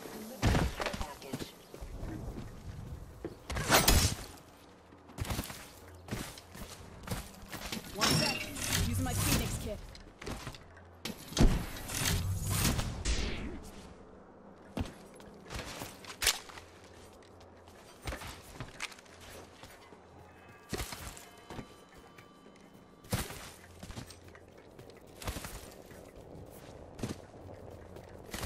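Quick footsteps patter in a running game character's stride.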